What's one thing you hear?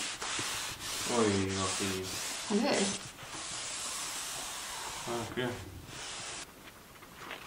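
A cloth rubs and wipes along a wooden sill.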